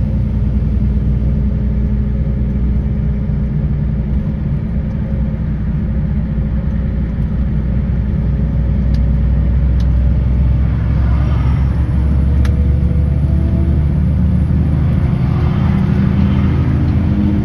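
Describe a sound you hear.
Tyres rumble and hiss on the road.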